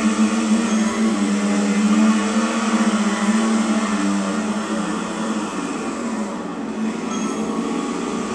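Racing motorcycle engines whine loudly as they speed past.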